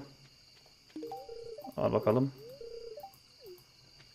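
Short game chimes and blips play as a dialogue opens.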